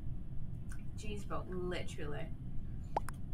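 A young woman speaks briefly and casually into a close microphone.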